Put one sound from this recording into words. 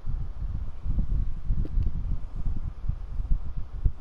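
A game block is placed with a soft thud.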